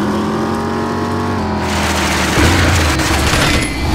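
Tyres skid on the road.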